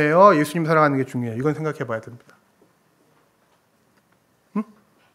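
A middle-aged man speaks emphatically into a microphone.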